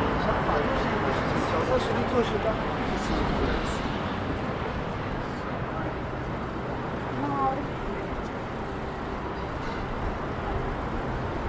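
Footsteps tap on the pavement.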